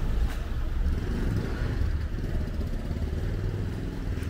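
A motorcycle engine hums as it rides by.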